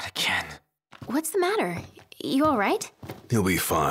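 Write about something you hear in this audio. A young woman asks with concern.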